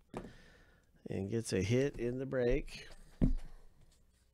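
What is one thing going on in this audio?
A plastic card case is set down into a cardboard box.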